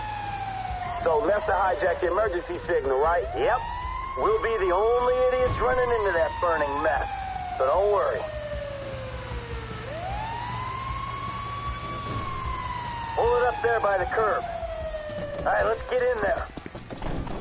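A fire engine horn blares in short, rapid bursts.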